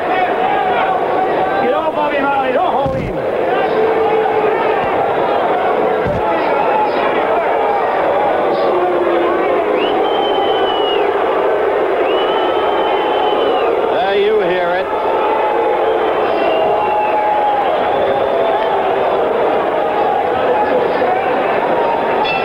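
A large crowd roars and cheers in a big arena.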